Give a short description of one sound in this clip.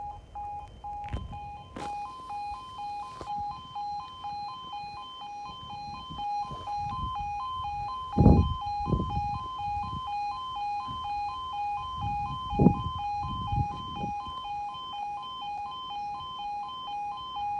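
A level crossing alarm sounds a steady, rapid two-tone warble.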